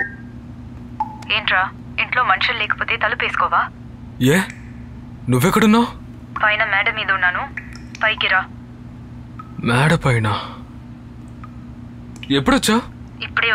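A man speaks quietly into a phone, close by.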